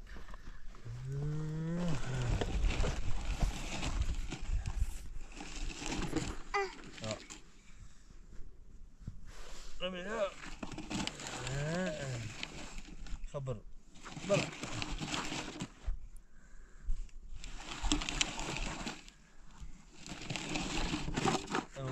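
Plastic toy wheels crunch and rumble over dry dirt.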